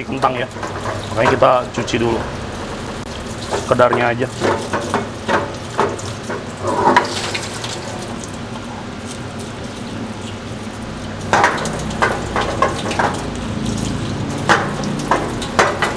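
Tap water runs steadily into a metal sink.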